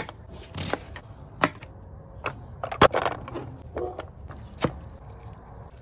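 A knife chops on a plastic cutting board.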